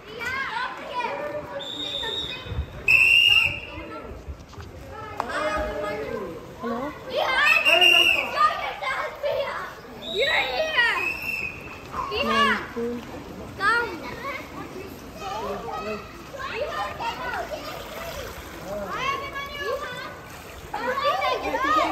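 Children shout and call out excitedly across an open outdoor pool.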